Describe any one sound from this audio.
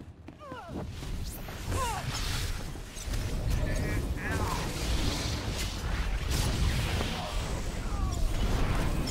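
Lightsabers hum and clash in a fight.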